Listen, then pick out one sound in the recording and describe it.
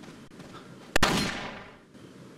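A crossbow bolt fires with a sharp snap.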